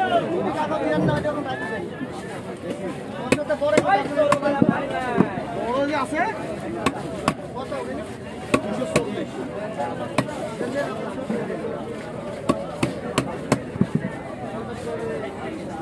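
Scales are scraped off a large carp against a fixed upright blade in short rasping strokes.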